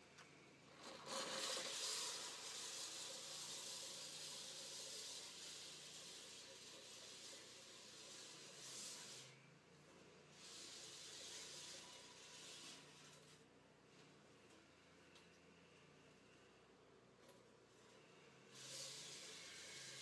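A push mower whirs and clatters as it cuts grass.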